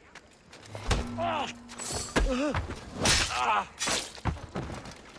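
A man groans and cries out in pain.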